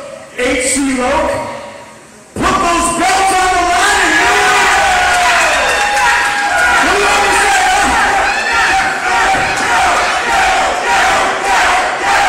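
A man talks loudly in a large echoing hall.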